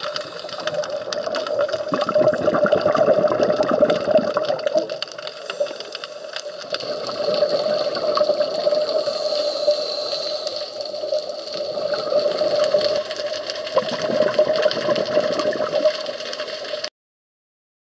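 Bubbles gurgle and rush out in bursts underwater.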